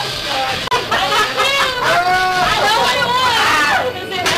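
A woman shrieks with high-pitched laughter.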